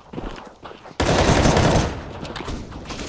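Rapid gunfire rattles out in bursts.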